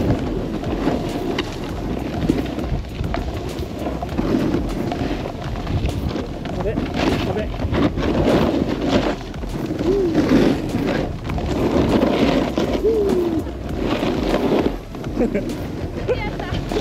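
A snowboard scrapes and hisses over packed snow.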